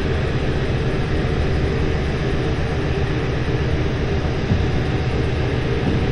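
A diesel locomotive engine rumbles.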